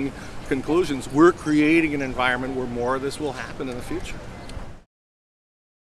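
A middle-aged man speaks earnestly, close up.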